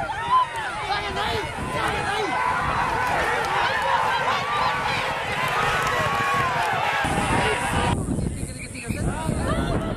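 A crowd of men and women shouts and cheers loudly outdoors.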